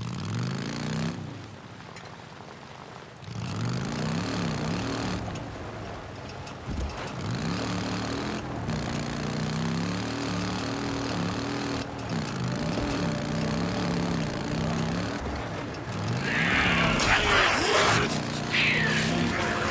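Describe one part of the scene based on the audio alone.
Tyres crunch on gravel and dirt.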